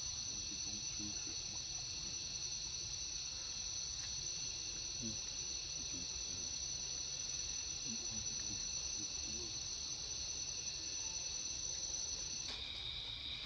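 A young monkey squeaks softly nearby.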